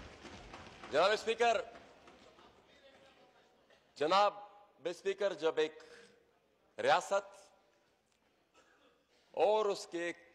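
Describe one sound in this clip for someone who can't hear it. A man speaks with animation into a microphone, in an echoing hall.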